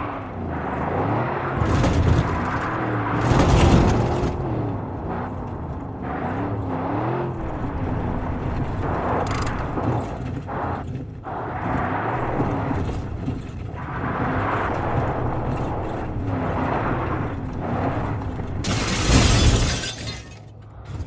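A car engine hums, its pitch rising and falling as it drives.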